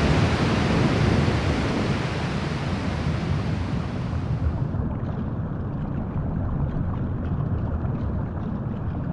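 Water bubbles rush and swirl with a deep, muffled roar.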